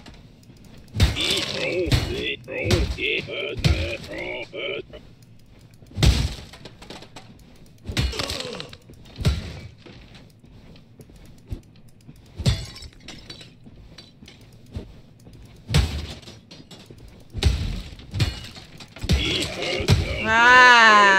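Heavy hammer blows thud and crack again and again.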